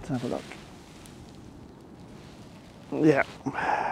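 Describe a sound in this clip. A hand brushes through short grass and picks up a small stone.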